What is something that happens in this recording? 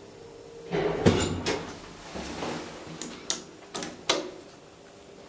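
Elevator buttons click as they are pressed.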